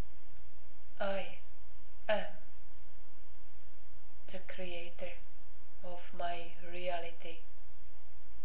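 A woman speaks in short bursts close by.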